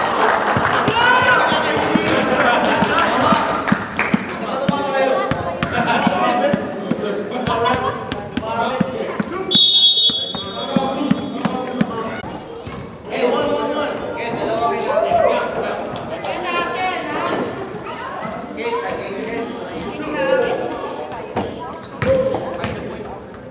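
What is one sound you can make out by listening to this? Several young men talk and call out across a large echoing gym.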